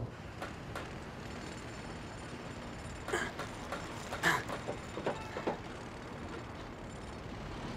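Building materials knock and clatter as workers carry them.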